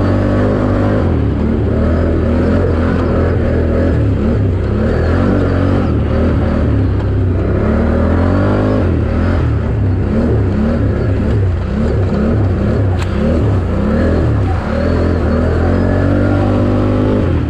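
Tyres churn through mud and dirt.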